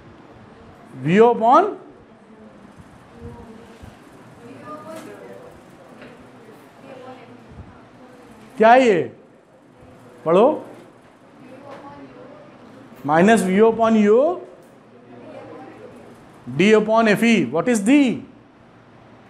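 A middle-aged man lectures calmly and clearly, close by.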